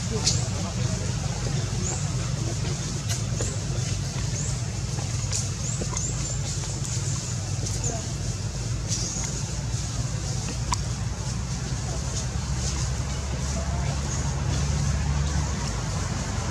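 A baby monkey squeaks in short high cries.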